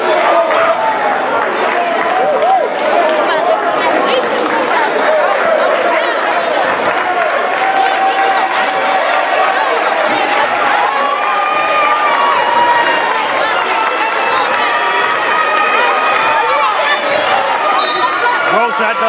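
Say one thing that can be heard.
A crowd chatters loudly in a large echoing gym.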